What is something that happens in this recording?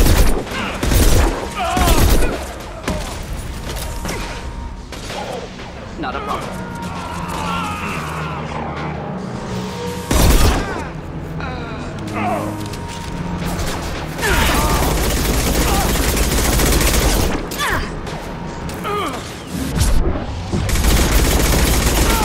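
Heavy gunshots fire in loud bursts.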